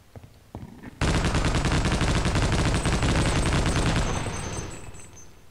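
A machine gun fires a long rapid burst.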